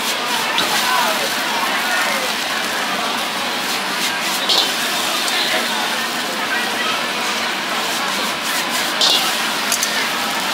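A metal ladle clanks against a wok.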